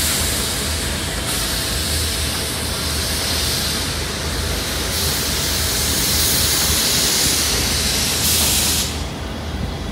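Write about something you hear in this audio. Steam hisses loudly from a nearby locomotive.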